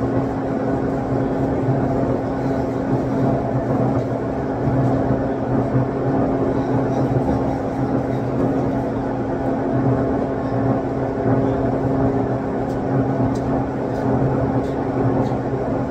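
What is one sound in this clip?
A spray booth's extraction fan hums steadily in a large echoing hall.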